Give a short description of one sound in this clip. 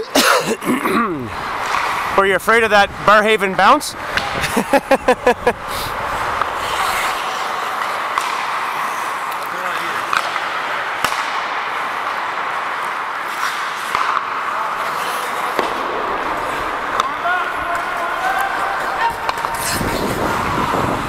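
Skate blades scrape and hiss steadily on ice.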